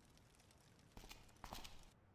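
Footsteps scuff softly on the ground.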